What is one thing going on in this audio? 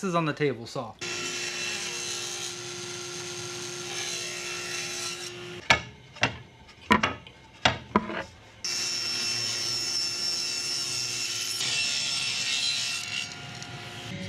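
A table saw whirs steadily as it cuts wood.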